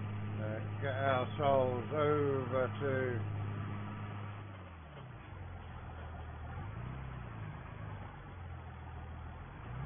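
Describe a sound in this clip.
A tractor engine hums steadily, its pitch dropping briefly and then settling lower.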